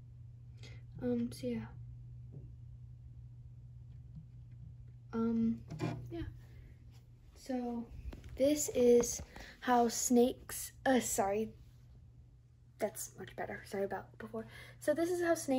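A young girl speaks close to a microphone with animation.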